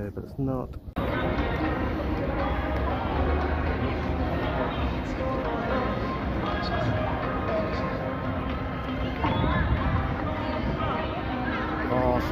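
A crowd of people chatters and walks outdoors.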